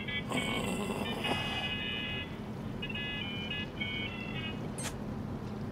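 A mobile phone rings with an electronic tune.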